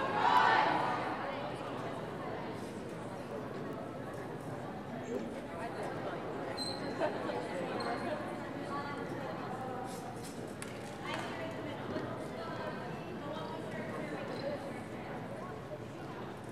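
Young women's voices call out and chatter in a large echoing gym.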